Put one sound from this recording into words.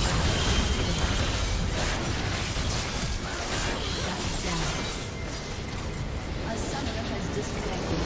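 Magic blasts and sword strikes crackle and clash in a hectic fight.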